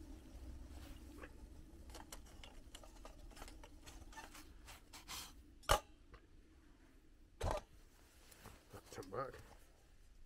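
A metal spoon clinks against a small pot.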